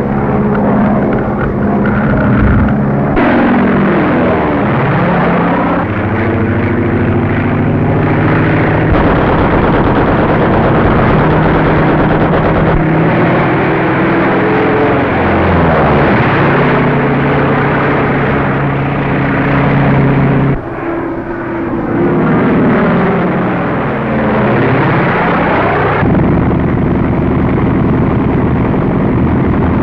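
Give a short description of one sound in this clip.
A propeller plane engine roars and whines as it swoops past.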